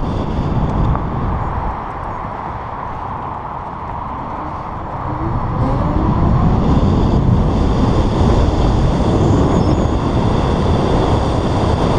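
A motorcycle engine hums and revs up.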